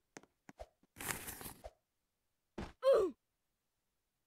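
A game character breaks apart with a crunching burst.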